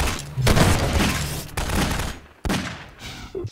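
Loud gunshots and blasts ring out with echoes.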